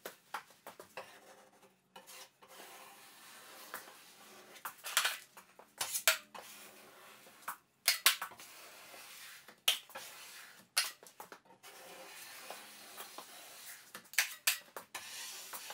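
A drywall taping knife scrapes, spreading joint compound over drywall.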